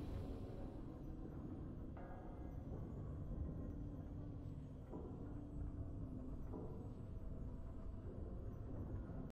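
Triumphant game victory music plays.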